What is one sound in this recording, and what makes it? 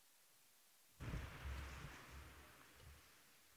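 A woman begins speaking quietly through a microphone.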